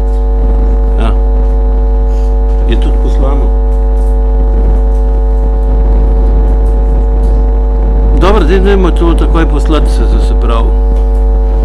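A man speaks with animation through a microphone, in short bursts.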